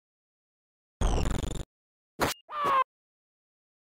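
A sword strikes with a sharp hit.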